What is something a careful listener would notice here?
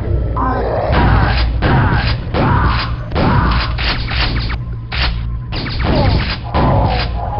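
A double-barrelled shotgun fires in loud blasts.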